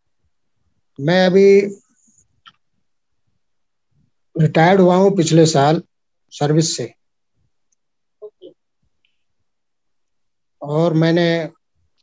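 A middle-aged man speaks calmly in short phrases, close to the microphone.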